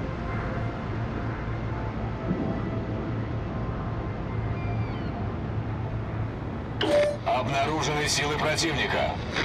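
A ship's engine hums low and steady.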